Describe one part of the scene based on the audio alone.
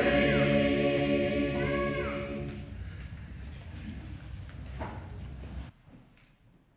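A congregation sings a hymn together in an echoing hall.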